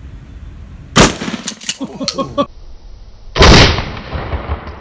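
A 12-gauge shotgun fires.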